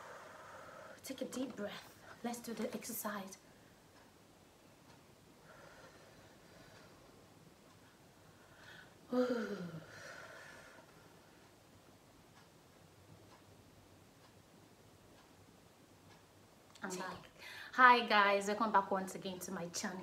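A young woman speaks calmly and close to a microphone, with long pauses.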